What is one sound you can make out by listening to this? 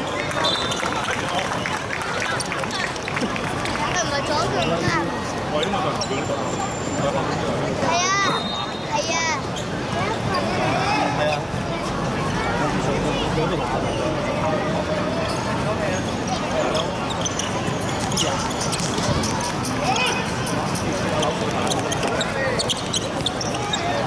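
Children shout to each other while playing football.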